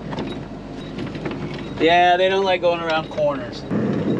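A metal mining cart rattles as it rolls along.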